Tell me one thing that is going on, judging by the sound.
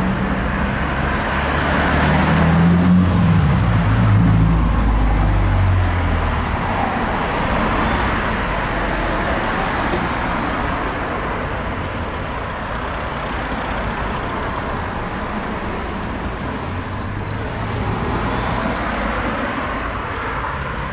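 Cars drive past on a nearby road, engines humming and tyres hissing.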